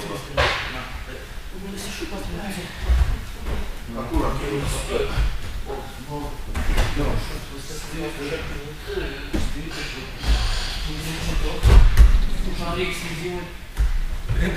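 A man talks calmly nearby in an echoing room.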